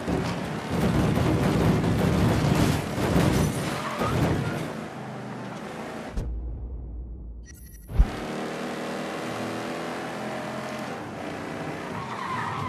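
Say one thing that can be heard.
A car engine roars as it drives fast.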